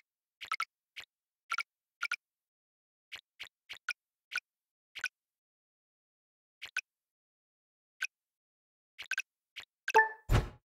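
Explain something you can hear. Short bright chimes pop one after another as blocks are picked up in a game.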